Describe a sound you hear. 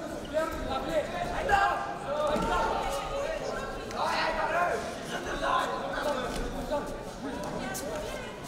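Feet shuffle and thud on a mat as two fighters grapple.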